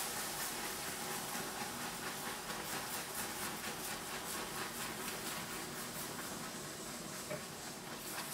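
Milk pours into a pot.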